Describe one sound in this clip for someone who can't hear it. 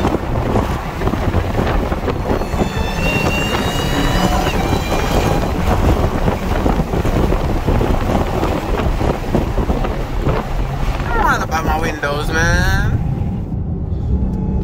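A car engine roars steadily at highway speed.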